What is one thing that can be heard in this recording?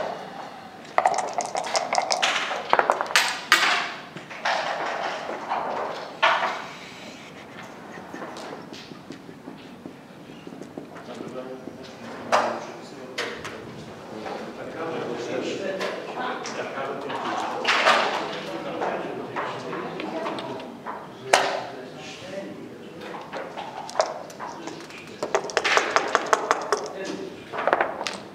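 Dice rattle in a cup.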